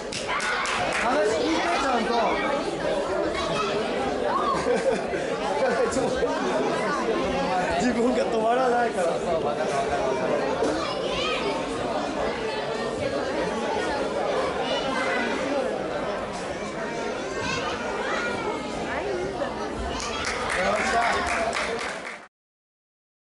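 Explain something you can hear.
A crowd of children and adults chatters in a large echoing hall.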